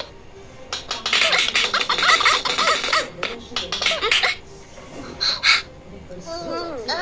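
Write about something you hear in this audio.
Squeaky cartoon game sounds play from small device speakers.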